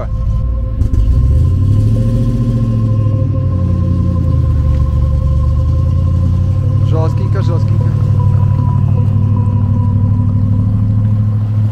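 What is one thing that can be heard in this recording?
Car tyres roll and squelch through wet mud.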